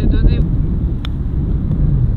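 A golf club taps a ball with a light click.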